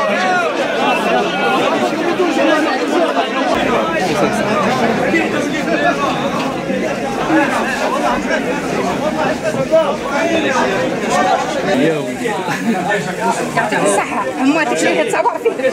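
Several men chatter loudly close by in a crowd.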